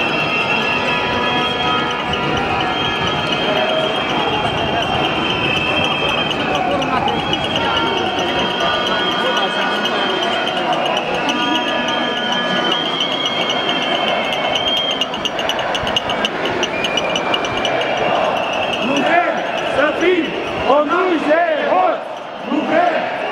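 A large crowd of men and women chatters and shouts outdoors.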